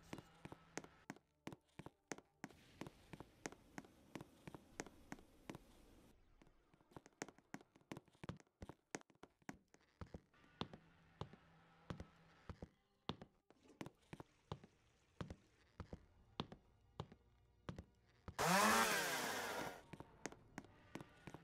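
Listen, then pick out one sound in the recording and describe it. Footsteps tap quickly and steadily on a hard floor.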